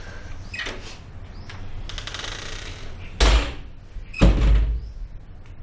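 A wooden door bangs shut.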